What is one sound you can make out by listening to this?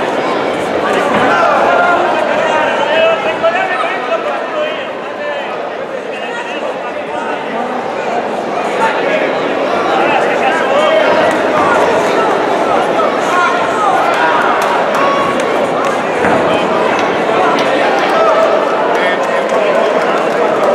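Gloved punches and kicks thud against bodies.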